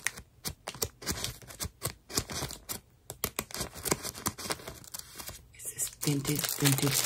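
Paper pages rustle and crinkle close by as fingers flip through them.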